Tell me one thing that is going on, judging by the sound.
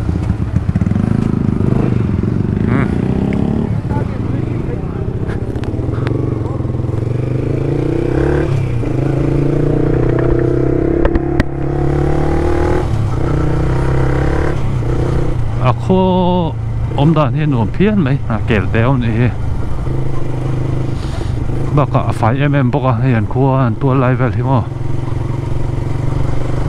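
A motorcycle engine hums and revs as the bike rides along.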